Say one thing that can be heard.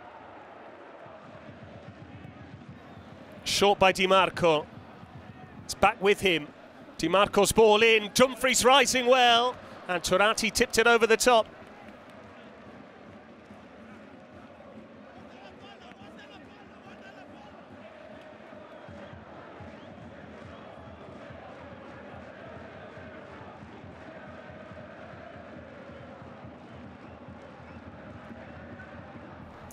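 A stadium crowd murmurs and chants steadily in the distance.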